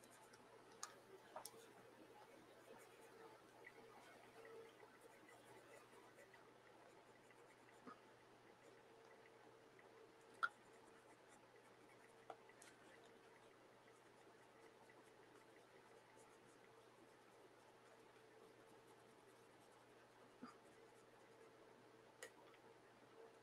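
A paintbrush brushes softly across paper.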